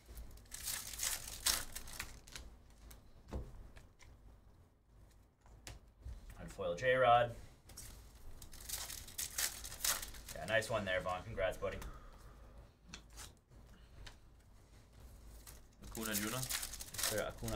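A foil card pack tears open.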